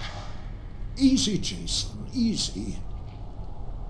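An elderly man speaks calmly in a low, gentle voice.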